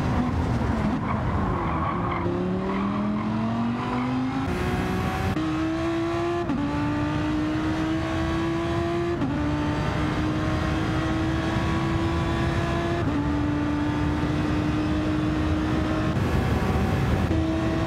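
A racing car engine roars at high revs, climbing in pitch through each gear and dropping briefly at each gear change.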